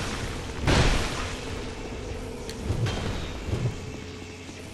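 A sword strikes and clangs in combat.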